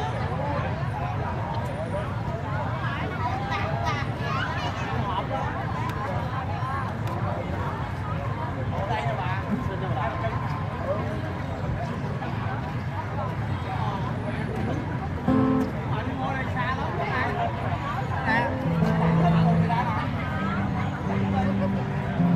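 Music plays over loudspeakers from a stage.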